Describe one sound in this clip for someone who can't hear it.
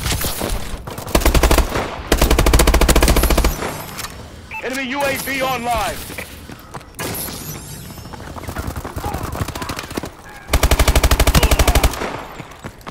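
A rifle fires in rapid, loud bursts.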